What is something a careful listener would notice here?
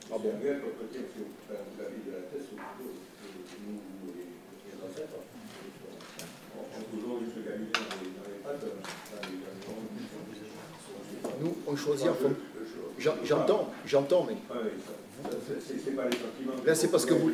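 A woman speaks calmly into a microphone in an echoing room.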